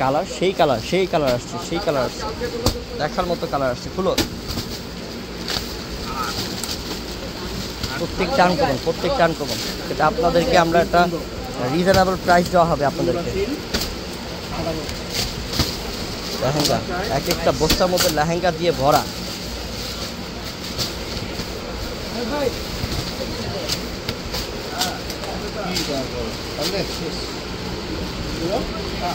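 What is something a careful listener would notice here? Plastic wrapping rustles and crinkles as bundles are handled.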